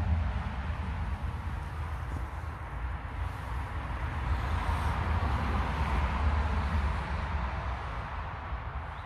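Fabric rustles against a microphone.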